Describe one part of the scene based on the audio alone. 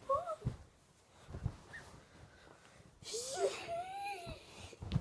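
A young child squeals and shouts playfully close by.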